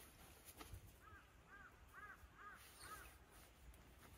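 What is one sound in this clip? A small dog whines softly.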